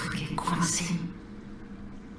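A young woman speaks with effort, straining.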